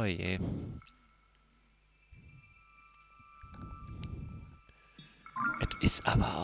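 Soft electronic menu tones chime.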